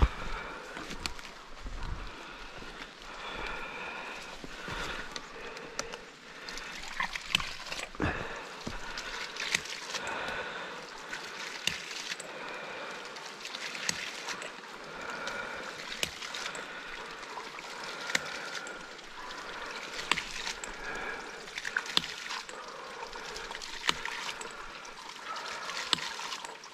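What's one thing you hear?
Footsteps rustle through leaves and undergrowth.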